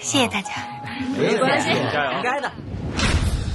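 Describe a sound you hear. Young men and women talk with animation nearby.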